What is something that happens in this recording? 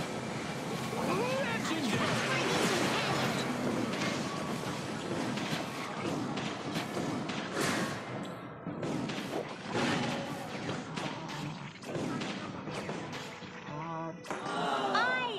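Game weapons clang and hit in rapid bursts.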